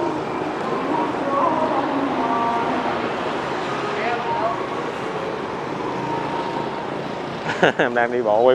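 Motorbike engines hum past on a city street.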